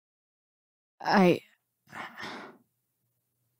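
A teenage girl speaks tensely.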